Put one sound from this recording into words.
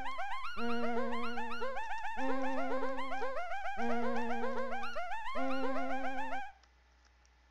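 A bouncy electronic game tune plays.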